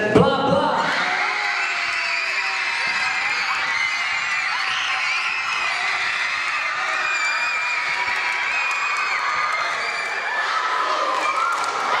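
Girls cheer and scream excitedly.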